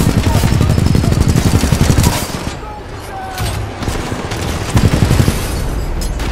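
A rapid-fire gun shoots in fast bursts.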